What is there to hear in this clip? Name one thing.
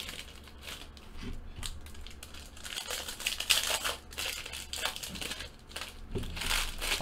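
Foil card wrappers crinkle and tear.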